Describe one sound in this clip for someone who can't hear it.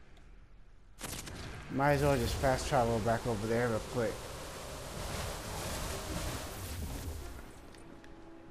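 A deep magical rushing whoosh swells and then fades away.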